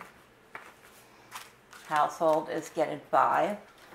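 Plastic envelopes rustle and slide across a table.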